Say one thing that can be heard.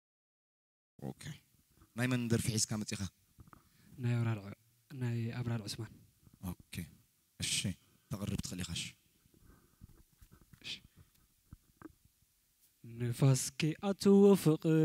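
A young man speaks into a microphone with animation, heard through loudspeakers.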